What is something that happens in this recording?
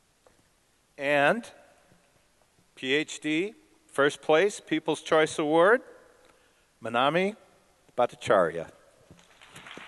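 An elderly man speaks into a microphone over a loudspeaker, reading out in a hall.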